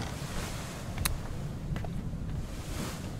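A door handle clicks and turns.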